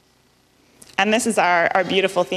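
A young woman speaks into a microphone in a calm, presenting manner.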